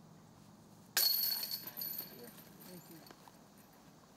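Metal chains rattle and jingle as a disc hits a basket.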